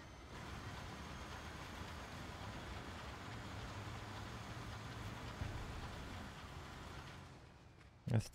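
A road milling machine's engine rumbles steadily.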